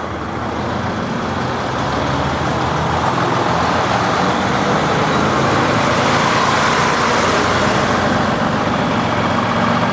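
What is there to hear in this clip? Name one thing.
A diesel engine rumbles loudly close by as a coach drives past.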